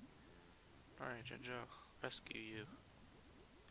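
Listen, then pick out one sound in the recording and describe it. A cartoon bird squawks and chatters in a burst.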